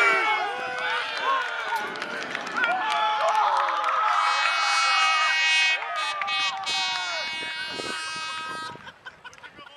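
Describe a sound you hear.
A crowd of men shouts and cheers loudly outdoors.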